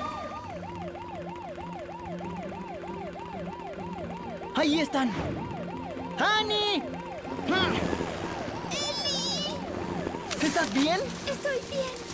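A toy-like siren wails in a fast, wobbling loop.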